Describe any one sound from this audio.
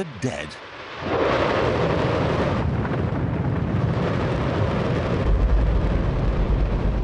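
A rocket engine roars loudly and steadily.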